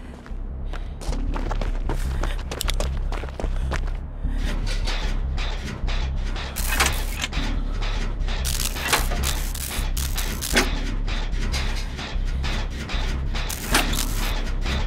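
Metal parts of a machine clank and rattle rapidly.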